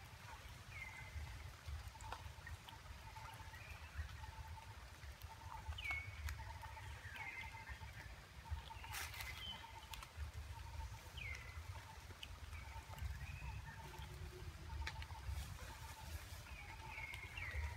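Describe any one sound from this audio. A monkey bites and chews watermelon.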